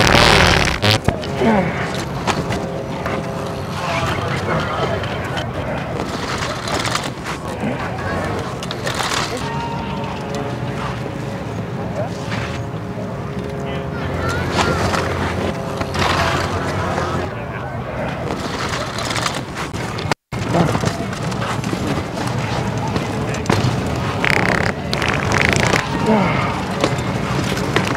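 Men and women chat and talk nearby outdoors.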